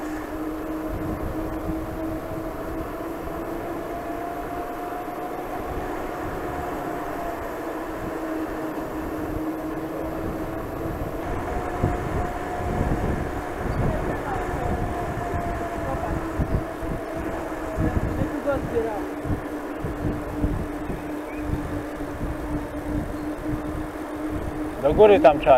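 Wind rushes and rumbles past a moving cyclist outdoors.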